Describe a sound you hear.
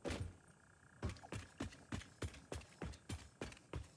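Footsteps thud at a steady, even pace.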